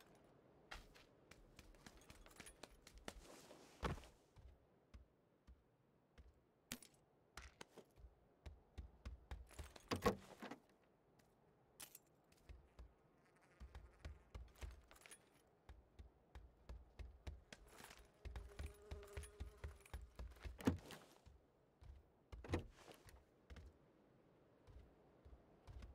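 Footsteps thud rhythmically on wooden floors.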